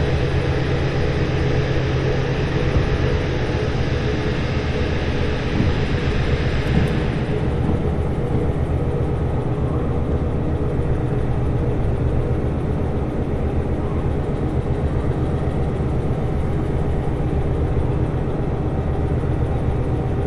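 A diesel locomotive engine rumbles, heard from inside the cab.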